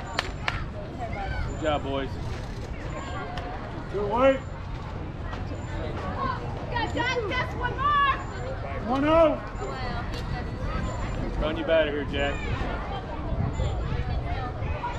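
Young boys shout and call out across an open field.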